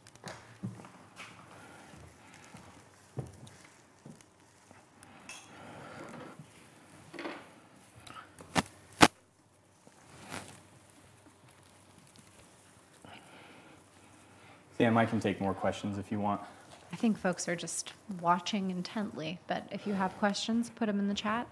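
Pine needles rustle as branches are handled.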